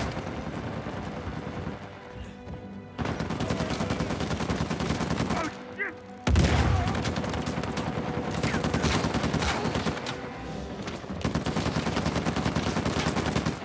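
Rapid gunfire rattles nearby.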